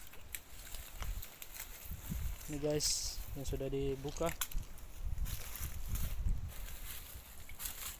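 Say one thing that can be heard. A plastic sack rustles.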